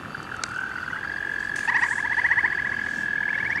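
A small phone speaker plays back a recorded frog call.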